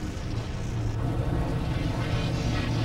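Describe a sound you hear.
An energy blast fires with a roaring burst.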